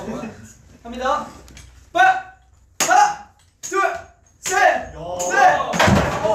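A young man calls out in short bursts.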